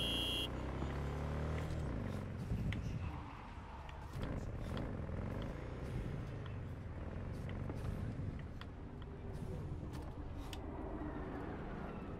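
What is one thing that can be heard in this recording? A motorbike engine hums steadily as it rides along.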